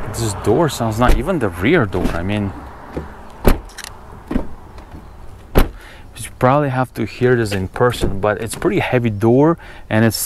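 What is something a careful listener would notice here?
A car door handle clicks as the door opens.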